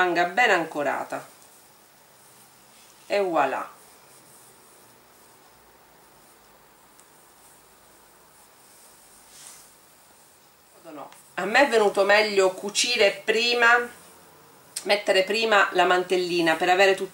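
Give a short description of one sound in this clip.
Soft fabric rustles as hands handle it.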